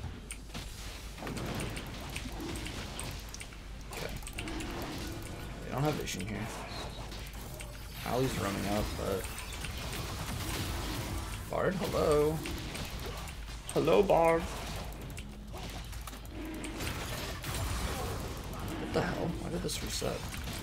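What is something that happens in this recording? Game sound effects clash and whoosh during a fight.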